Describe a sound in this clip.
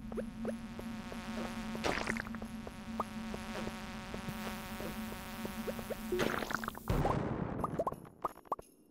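Upbeat video game music plays with a steady beat.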